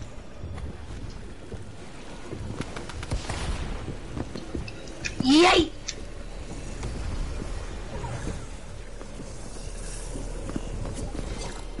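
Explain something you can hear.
A game character gulps down a drink with loud slurping sounds.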